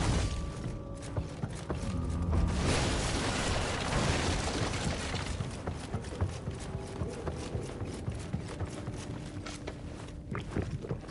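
Quick footsteps thud across a wooden floor.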